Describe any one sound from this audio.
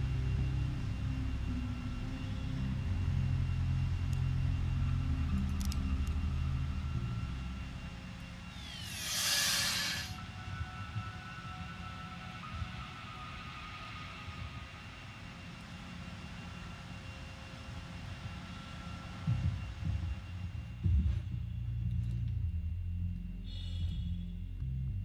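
A deep engine hum drones steadily.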